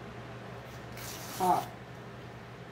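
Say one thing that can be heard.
Stiff paper rustles and crinkles between hands.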